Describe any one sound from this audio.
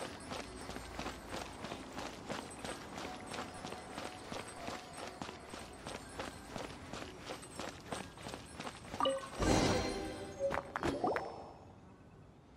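A lyre plays a quick, rhythmic tune.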